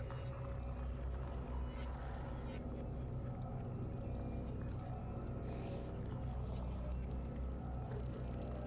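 Short rising electronic chimes sound again and again as a score counts up.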